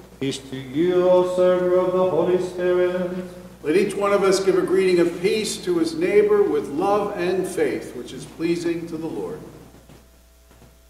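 A man chants loudly in a large echoing hall.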